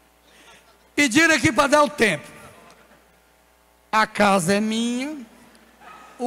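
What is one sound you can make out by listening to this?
A man speaks loudly and with animation through a microphone and loudspeakers.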